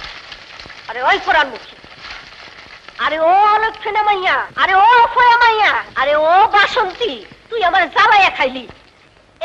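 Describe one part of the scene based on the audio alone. A young woman sings a melodious song close by.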